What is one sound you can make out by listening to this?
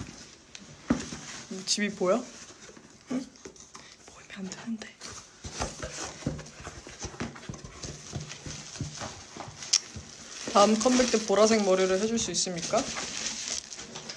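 Cardboard rustles and crinkles in hands.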